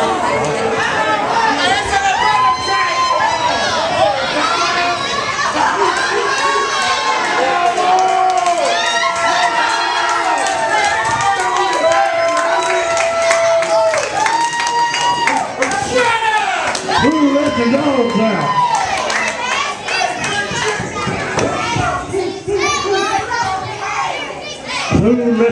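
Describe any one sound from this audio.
A crowd of men and women shouts and jeers loudly in a large echoing hall.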